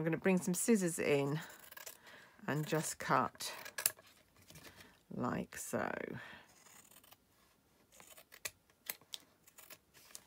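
Scissors snip through card.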